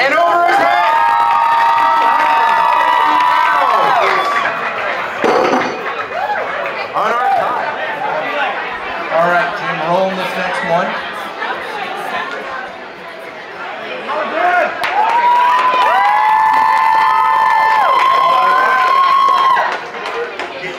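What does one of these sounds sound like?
A crowd of people shouts and cheers loudly, with long drawn-out yells.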